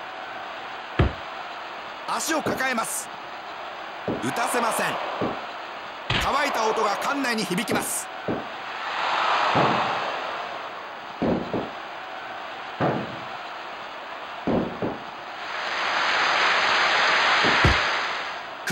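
Heavy bodies thud onto a wrestling mat.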